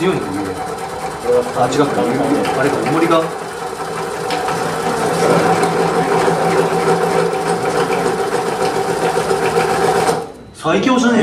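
A shaking machine hums and whines steadily.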